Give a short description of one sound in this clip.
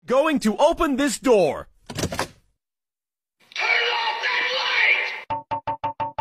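A young man shouts with excitement close by.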